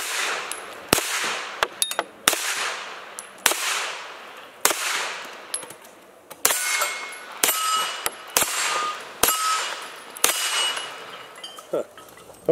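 A rifle fires a string of loud shots that echo outdoors.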